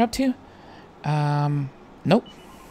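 A short electronic menu beep sounds.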